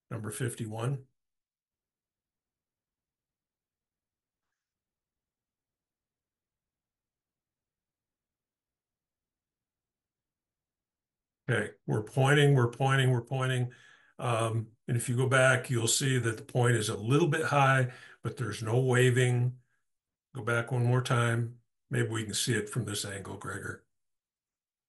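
A man talks calmly into a microphone over an online call.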